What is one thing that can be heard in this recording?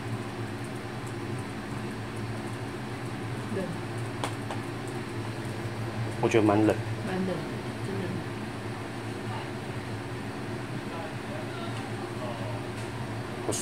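A portable air conditioner hums steadily.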